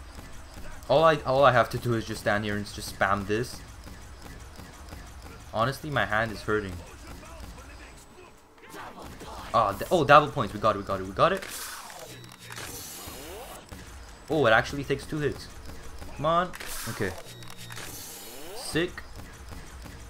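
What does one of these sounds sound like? A ray gun fires bursts of sharp electronic zaps.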